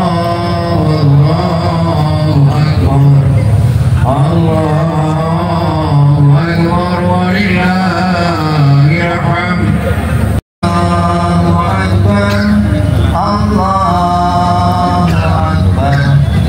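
A group of men chant together in a steady melodic rhythm outdoors.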